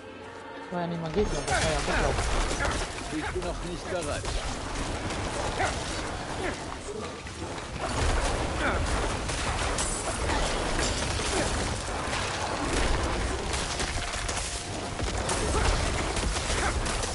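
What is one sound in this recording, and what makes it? Spells crackle and burst in a fast, busy fight.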